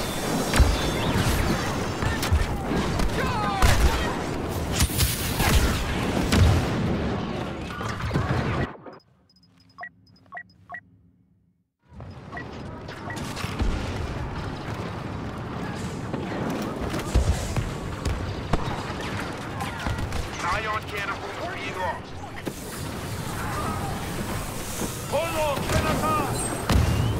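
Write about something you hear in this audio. Blaster guns fire in rapid bursts.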